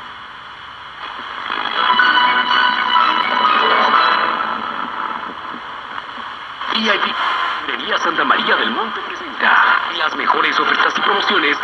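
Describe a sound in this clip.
A radio broadcast crackles in and out through a small loudspeaker.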